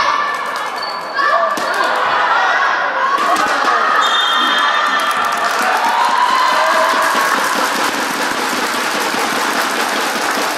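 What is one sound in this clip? A crowd of young girls cheers and shouts in a large echoing hall.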